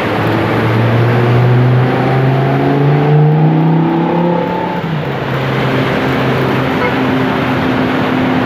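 A car engine hums loudly, rising and then falling in pitch.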